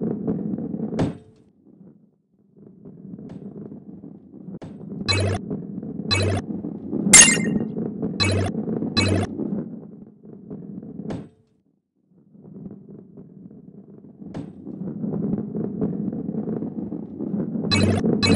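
A ball rolls with a low, steady rumble.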